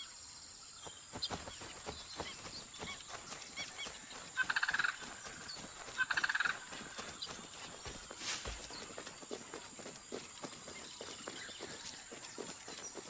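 Footsteps run through grass and undergrowth.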